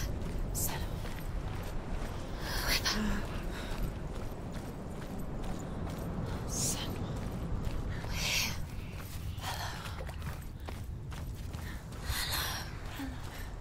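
Footsteps run over wet sand and shallow water.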